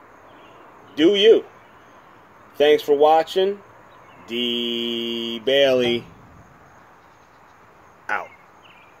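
A man speaks close to a phone microphone in short, animated bursts.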